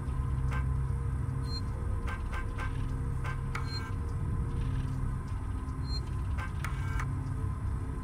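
Short electronic blips sound as a terminal menu is stepped through.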